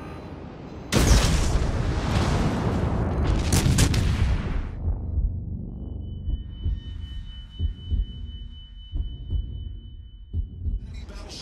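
Shells explode in the water with deep roaring splashes.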